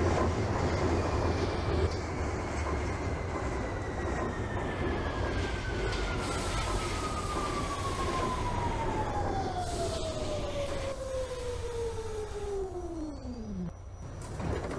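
An electric subway train's motors whine and fall in pitch as the train brakes into a station.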